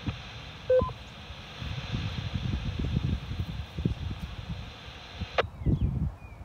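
A two-way radio hisses with static, then cuts off abruptly.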